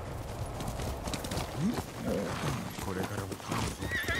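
A horse gallops with thudding hooves.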